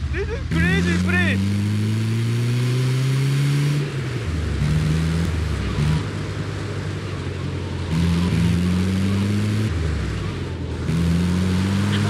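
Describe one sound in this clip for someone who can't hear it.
A vehicle engine revs and roars, rising in pitch as it speeds up, then dropping and rising again.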